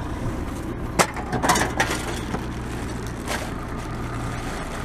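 Cans and bottles clink together.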